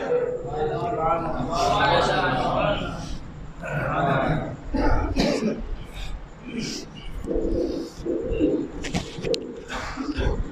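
A man chants loudly through a microphone.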